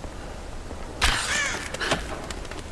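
An arrow whooshes off a bow.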